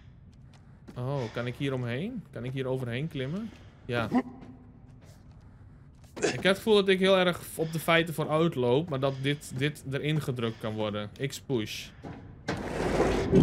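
A young man talks with animation, close to a headset microphone.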